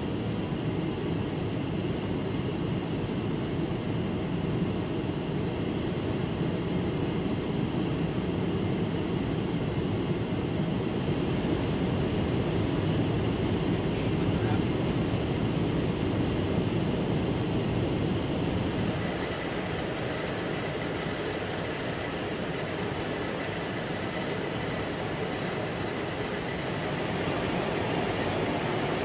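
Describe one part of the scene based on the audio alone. Jet engines roar steadily overhead.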